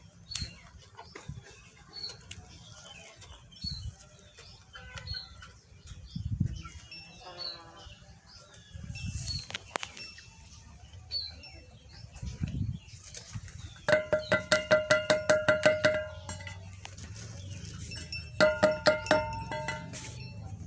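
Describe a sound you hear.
Chickens cluck softly nearby.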